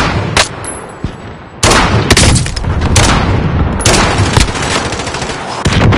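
Gunshots crack sharply, again and again.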